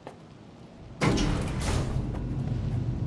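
Elevator doors slide shut with a thud.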